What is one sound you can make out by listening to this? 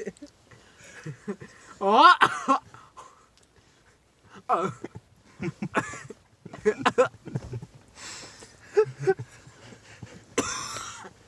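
A young man talks and laughs loudly up close.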